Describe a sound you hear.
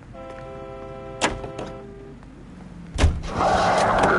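A car door opens and slams shut.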